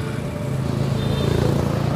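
A motorbike engine hums nearby.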